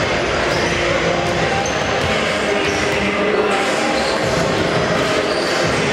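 Basketballs bounce on a wooden floor.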